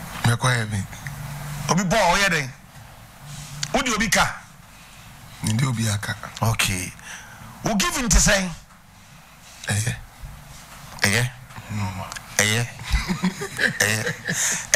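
A middle-aged man speaks with animation into a close microphone, pausing often.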